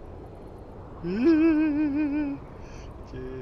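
A young man lets out a loud, wavering shout close to a microphone.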